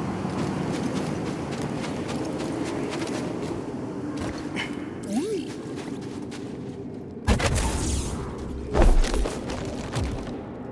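Footsteps crunch through snow at a quick pace.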